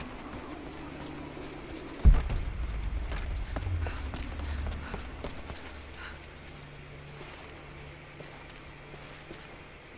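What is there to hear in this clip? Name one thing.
Footsteps crunch on snow and rock.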